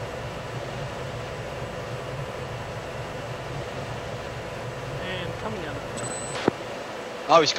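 A jet engine drones steadily.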